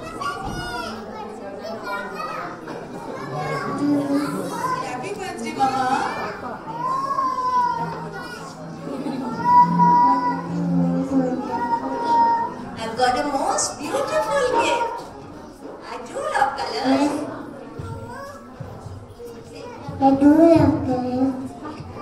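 A woman speaks gently into a microphone, coaxing a child.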